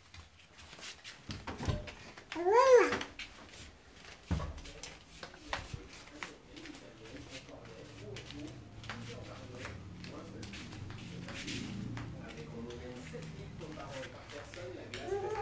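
Small bare feet patter on a wooden floor.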